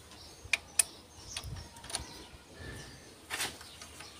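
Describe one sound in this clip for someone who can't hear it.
A metal tool clicks and taps against engine parts.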